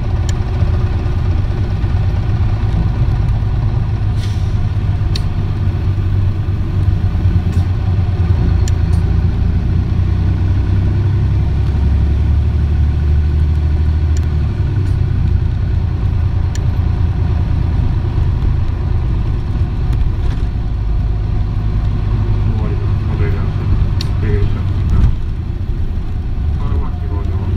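A bus engine idles with a steady low rumble close by.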